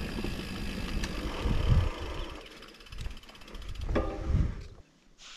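Bicycle tyres roll and rattle over a bumpy dirt trail.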